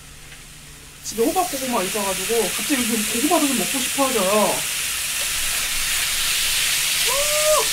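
Raw meat drops onto a hot grill and sizzles loudly and steadily.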